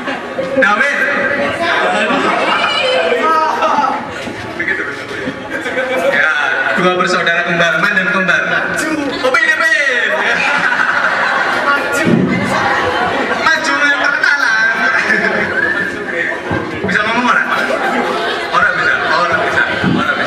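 Several young men sing along together.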